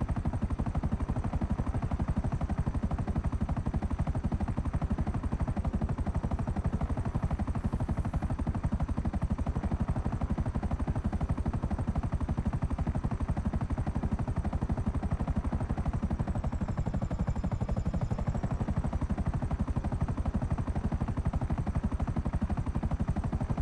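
A helicopter engine whines steadily.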